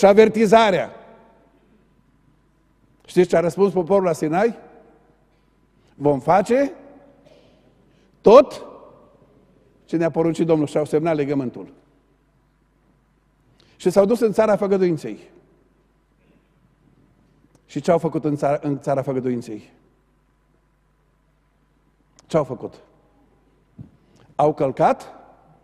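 A middle-aged man preaches with animation through a microphone, in bursts with pauses, in a large echoing hall.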